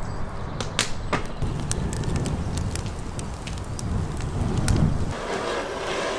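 Wood crackles and pops as it burns in a fire.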